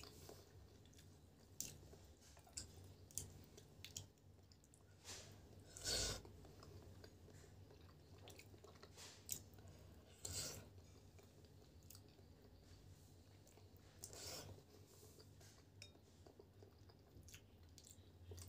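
A woman chews food noisily up close.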